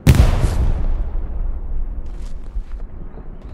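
A rifle fires a loud shot close by that echoes and rolls away.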